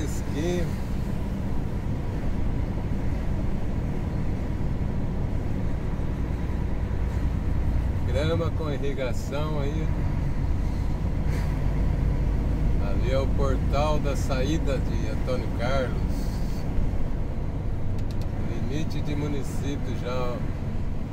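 A vehicle's engine rumbles steadily as it drives.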